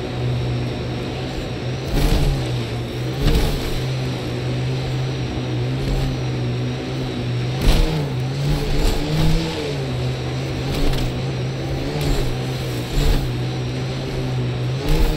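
A vehicle engine hums steadily, its pitch rising and falling as it drives.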